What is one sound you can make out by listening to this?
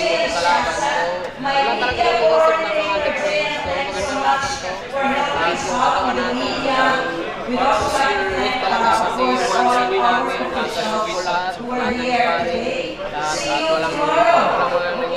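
A young man speaks calmly into a close microphone.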